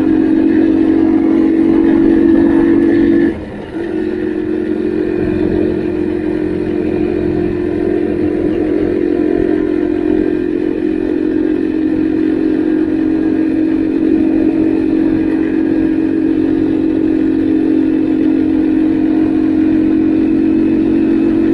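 A small motorbike engine buzzes steadily up close, dipping briefly as the rider shifts gear.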